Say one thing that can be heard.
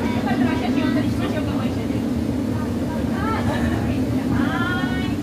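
Adult men and women chatter in the background.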